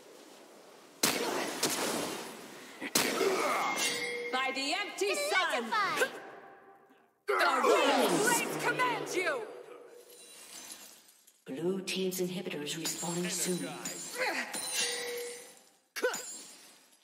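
Video game spell effects whoosh and crash during a battle.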